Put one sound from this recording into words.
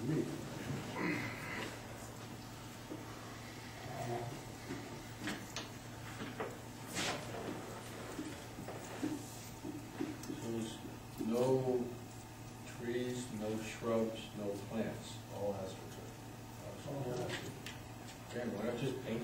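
A man speaks calmly, a little way off.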